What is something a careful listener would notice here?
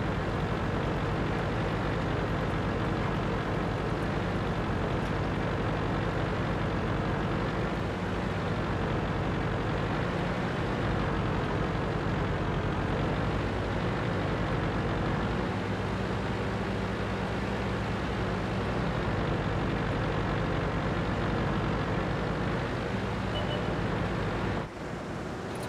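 A tank engine rumbles steadily as the tank drives.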